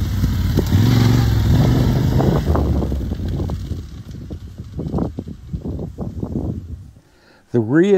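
A motorcycle engine revs loudly and fades as the bike rides away.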